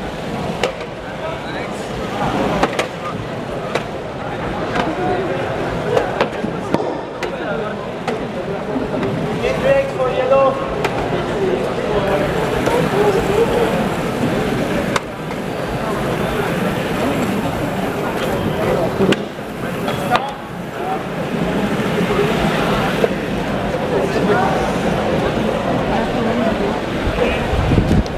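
A crowd of people chatters throughout.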